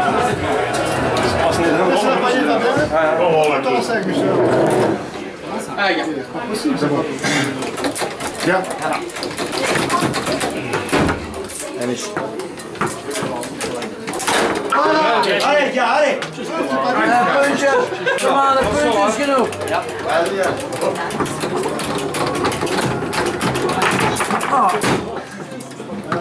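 Foosball rods clack and the ball knocks sharply against the table.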